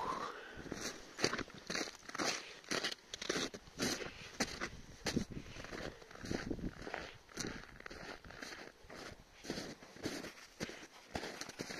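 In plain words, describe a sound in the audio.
A dog bounds through deep snow, paws thudding and scraping.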